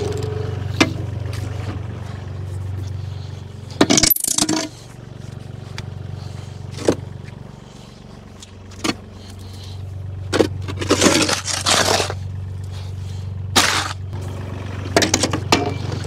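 A small loader's engine idles with a steady low rumble.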